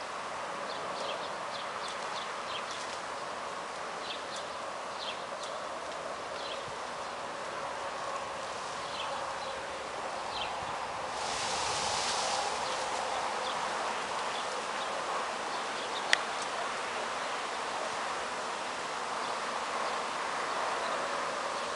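A swarm of bees buzzes steadily all around.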